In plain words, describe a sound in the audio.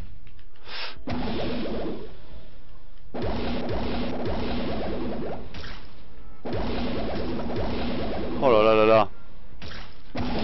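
Laser beams blast with a loud, roaring hiss.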